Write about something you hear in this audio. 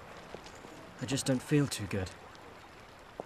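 A young man answers.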